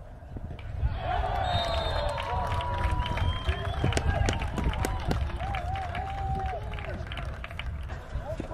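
Men shout and cheer at a distance.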